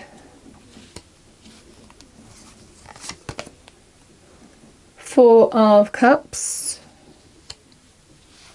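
Playing cards softly slap and slide as they are dealt onto a table.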